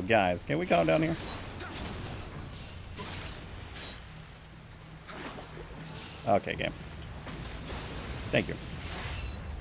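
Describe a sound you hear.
Swords clang and slash in a fight.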